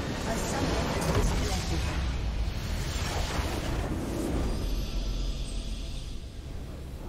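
A large magical blast explodes with a roaring burst.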